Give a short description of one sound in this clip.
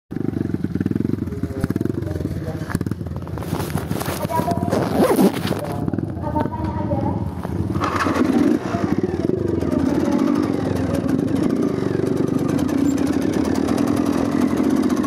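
A dirt bike engine rumbles and putters close by.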